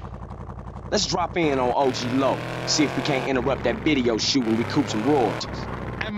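A man talks with animation over the engine.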